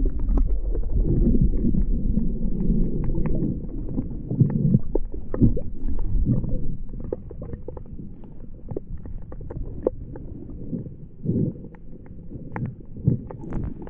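Water sloshes and rumbles, heard underwater.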